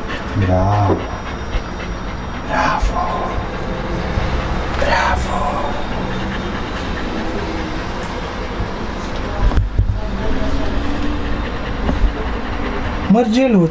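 A puppy pants rapidly close by.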